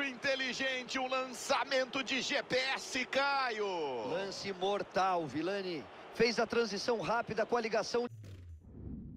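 A large crowd cheers and chants loudly in a stadium.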